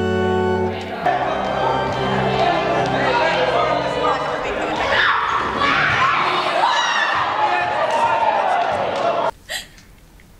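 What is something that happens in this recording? A crowd of young people cheers and shouts in a large echoing hall.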